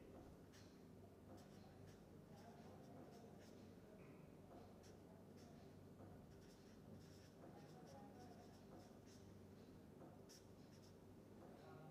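A marker squeaks and scratches on paper.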